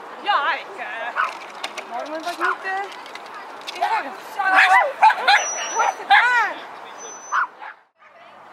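A woman calls out loudly and excitedly to a dog close by.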